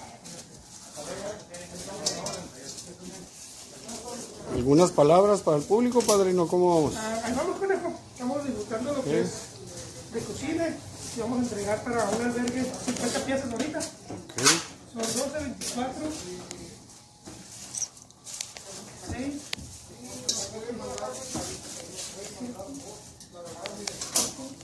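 Plastic bags rustle as bread is handled.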